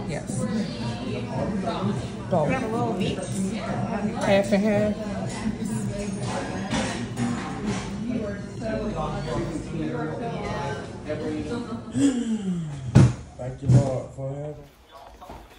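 Several people chatter in a busy room.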